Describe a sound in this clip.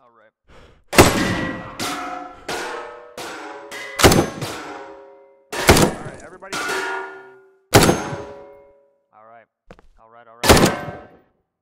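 A rifle fires single shots that echo in a large hall.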